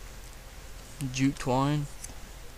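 A man speaks briefly and casually, close by.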